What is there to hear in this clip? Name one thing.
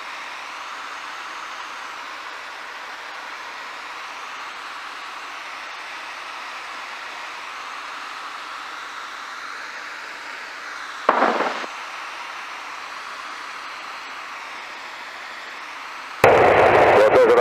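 A helicopter engine and rotor drone steadily from inside the cabin.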